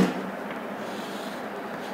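Chalk taps and scrapes on a board.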